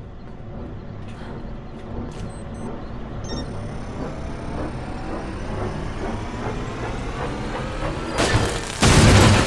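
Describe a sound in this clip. A large fan whirs, its pitch slowly rising.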